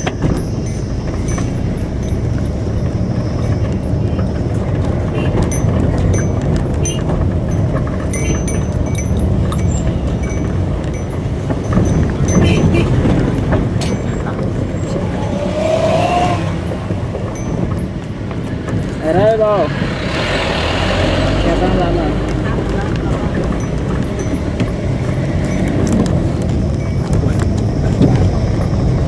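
A car engine hums from inside the car as it drives.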